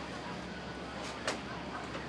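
Metal tongs click against a cup.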